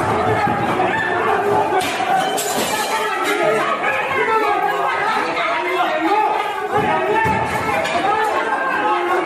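A crowd of men shout and argue loudly in an echoing hall.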